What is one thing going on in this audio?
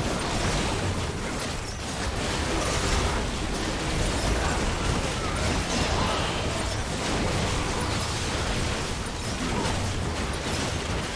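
Game spells and attacks crackle and boom in quick bursts.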